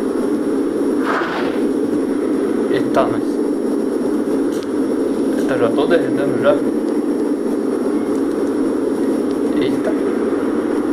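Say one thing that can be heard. A young man speaks briefly and quietly into a microphone.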